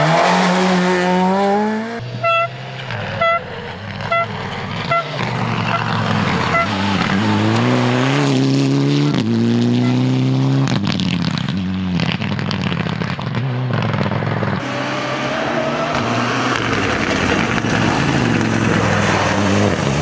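A rally car engine roars loudly as it speeds past and shifts gears.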